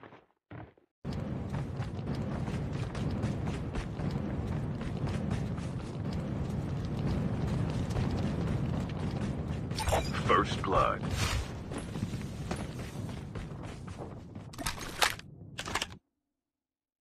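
Footsteps run over grass and dirt.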